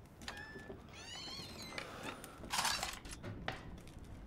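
A cabinet door creaks open.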